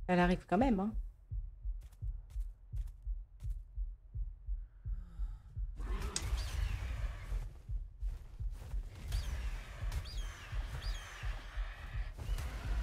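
Large wings flap with deep, rhythmic whooshing beats.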